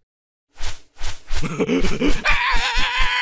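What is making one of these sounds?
A high, squeaky cartoon voice giggles and squeals with animation.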